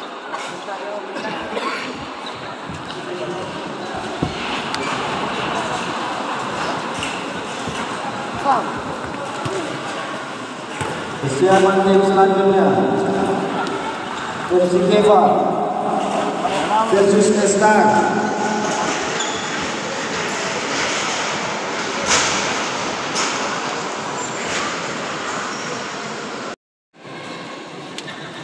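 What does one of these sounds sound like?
Young men talk and chatter nearby in a large echoing hall.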